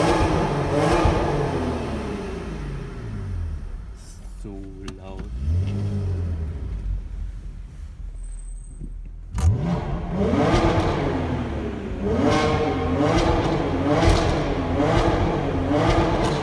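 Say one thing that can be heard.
A car engine revs hard, its pitch rising and falling as the gears change.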